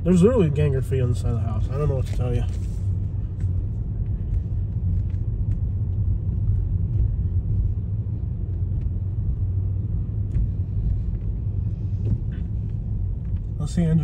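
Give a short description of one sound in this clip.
A car rolls slowly along a paved road with a low rumble.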